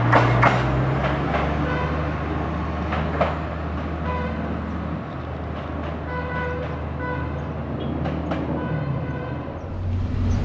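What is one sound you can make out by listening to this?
A train rolls slowly toward the crossing.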